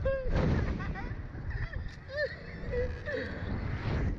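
A young man laughs loudly close by.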